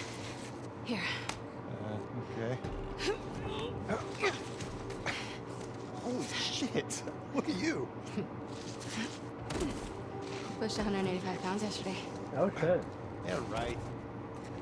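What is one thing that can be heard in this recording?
A young woman talks playfully.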